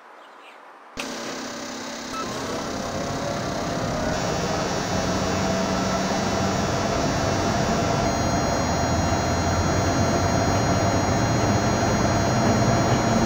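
A train's electric motors hum and whine as the train speeds up along the track.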